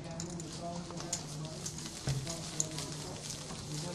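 Playing cards slide and shuffle across a felt table.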